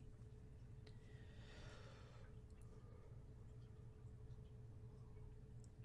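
A young man talks quietly and calmly into a microphone.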